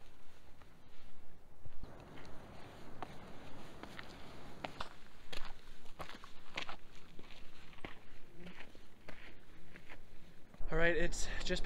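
Footsteps crunch on dirt and rock outdoors.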